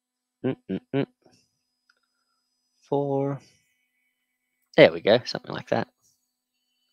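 A man speaks casually into a close microphone, in short bursts with pauses.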